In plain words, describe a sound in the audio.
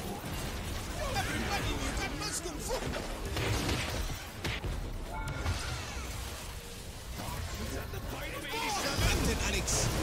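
Magic spells whoosh, crackle and boom in quick bursts.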